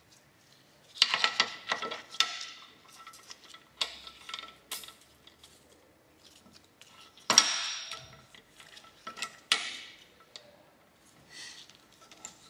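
A metal pipe bender clicks and creaks as a brake pipe is bent.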